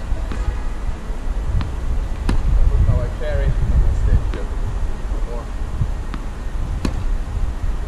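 Tennis balls thump off racket strings in short, sharp hits.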